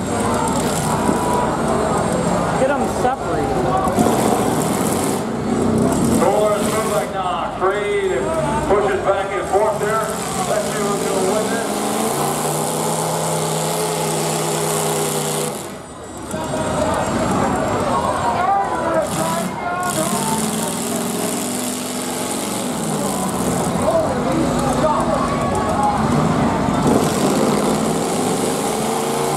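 Car engines rumble and rev.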